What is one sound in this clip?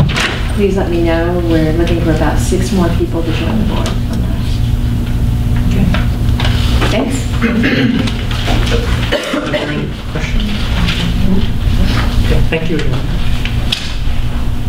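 A woman speaks calmly through a microphone in an echoing room.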